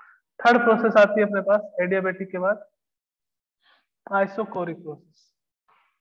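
A man speaks calmly, like a lecturer explaining.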